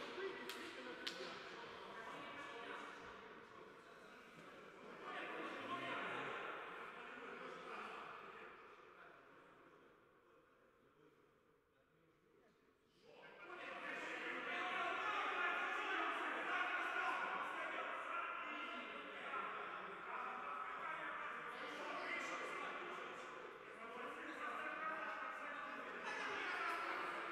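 Men shout and call to each other in a large echoing hall.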